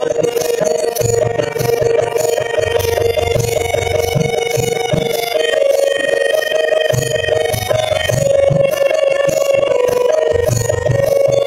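A harmonium plays a steady, held melody.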